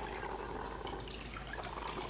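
Coffee trickles into a mug.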